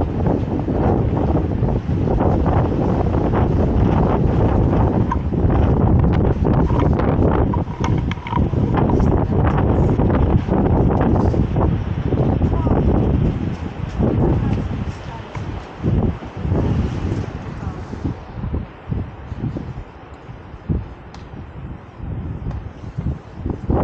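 Strong wind gusts and buffets outdoors.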